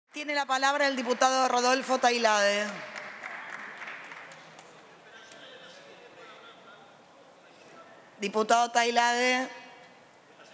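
A woman speaks firmly into a microphone in a large echoing hall.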